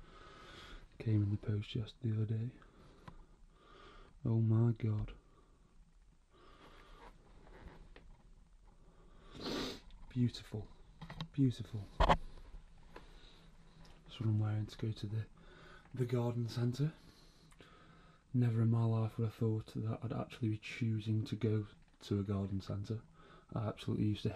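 A young man talks calmly and close to the microphone.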